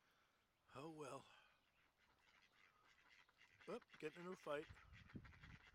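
Ducks quack loudly nearby.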